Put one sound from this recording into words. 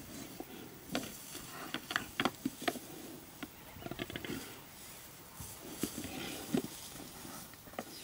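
Two buffalo bulls clash horns.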